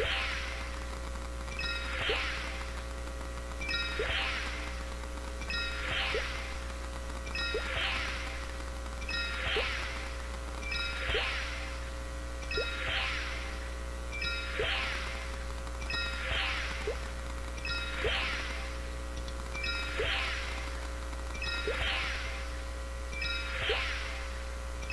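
A video game effect chimes and whooshes, repeating about every two seconds.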